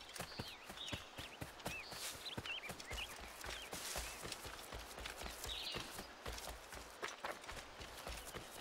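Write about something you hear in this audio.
Footsteps tread quickly through rustling grass and undergrowth.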